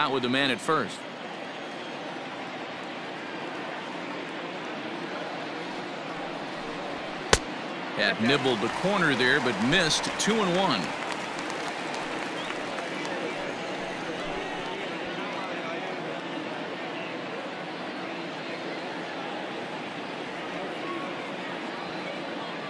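A crowd murmurs steadily in a large stadium.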